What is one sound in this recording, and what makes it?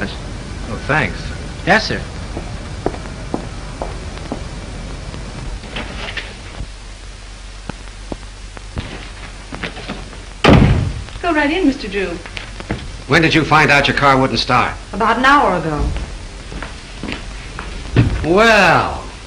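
A man speaks in short phrases.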